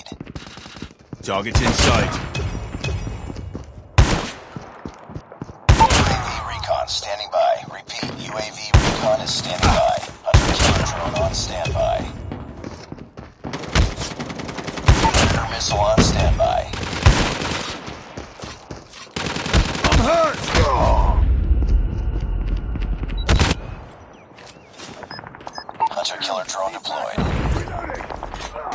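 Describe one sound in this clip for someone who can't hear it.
Gunfire from an automatic rifle rattles in quick bursts.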